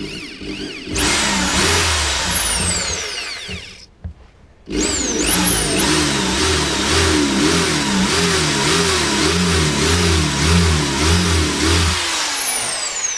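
A power drill whirs loudly, its pitch wavering.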